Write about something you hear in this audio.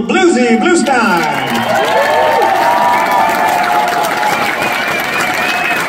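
A crowd cheers and whistles in a large hall.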